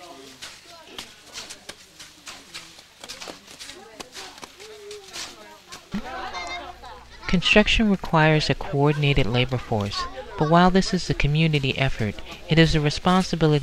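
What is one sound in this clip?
Hands scrape and scoop loose soil.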